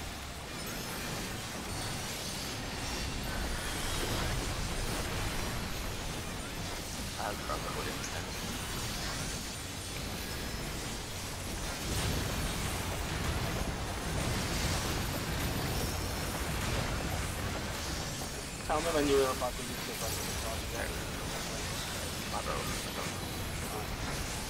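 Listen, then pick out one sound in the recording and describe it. Game music and spell effects play with booming low rumbles throughout.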